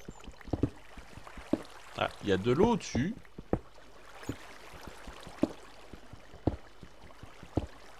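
A pickaxe strikes stone with sharp, repeated knocks.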